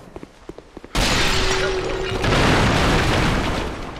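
Wooden crates smash and splinter apart.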